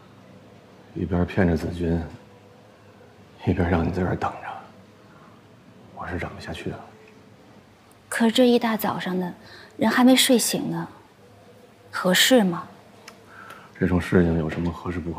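A young man speaks calmly and softly, close by.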